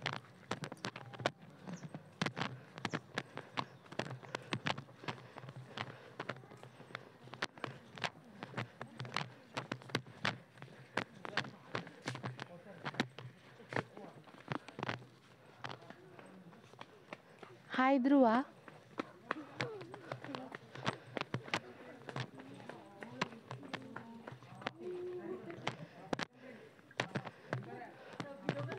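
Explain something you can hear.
Footsteps tap steadily on a stone path outdoors.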